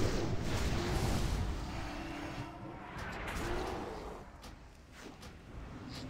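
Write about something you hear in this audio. Spell effects rumble and whoosh in a fantasy battle.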